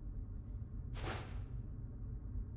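A sheet of paper rustles briefly.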